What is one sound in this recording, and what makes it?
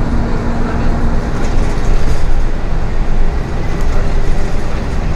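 A bus engine rumbles steadily as the bus drives along a road.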